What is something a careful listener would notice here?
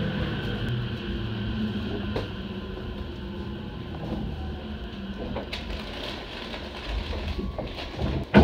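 An electric commuter train rolls into a station and slows to a stop.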